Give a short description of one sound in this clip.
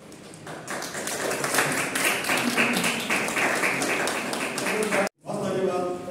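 A group of people clap their hands together.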